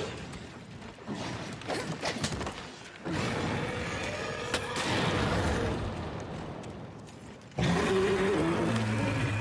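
A huge beast roars.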